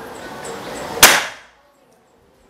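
An air rifle fires a single sharp shot.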